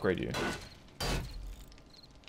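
A hammer knocks against a wooden door.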